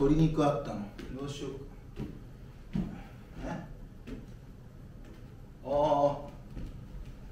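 A young man speaks with feeling in a small echoing room.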